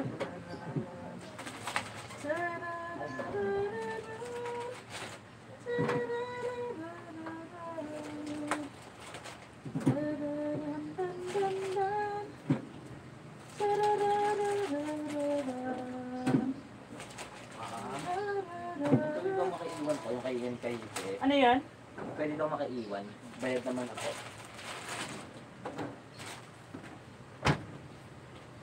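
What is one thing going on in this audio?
Plastic bottles crinkle and knock against a refrigerator shelf.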